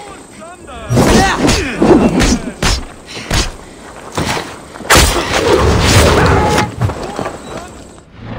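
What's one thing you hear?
Blades clash and thud in a close fight.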